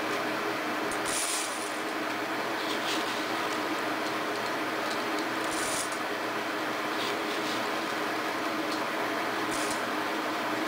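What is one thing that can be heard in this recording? Dry rice pours and rattles into a metal pot.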